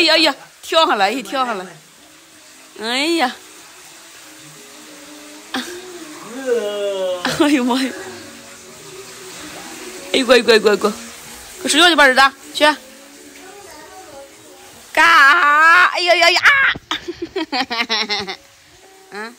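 A young man exclaims playfully and laughs close by.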